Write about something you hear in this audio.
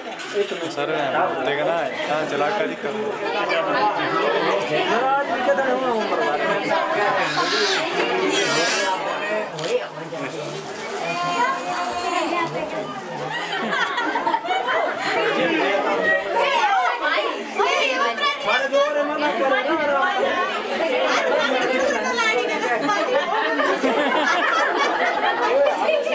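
A crowd of men and women chatters close by.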